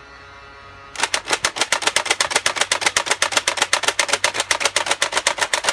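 A toy dart blaster fires darts in a fast, rattling burst.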